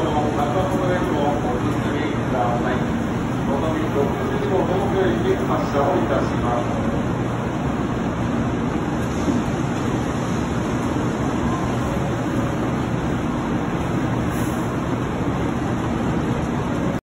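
A stationary train hums steadily.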